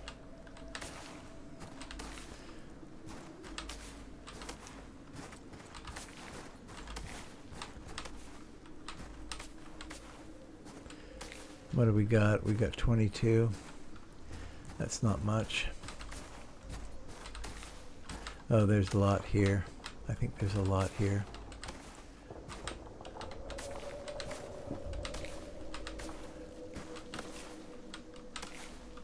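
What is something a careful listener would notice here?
Footsteps crunch steadily on snow.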